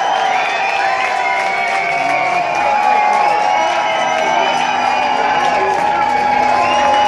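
A crowd cheers and shouts loudly.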